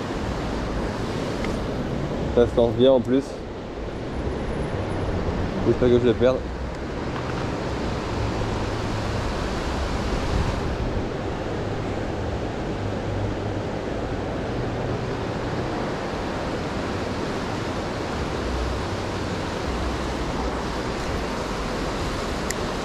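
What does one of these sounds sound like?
Wind blows steadily across a microphone outdoors.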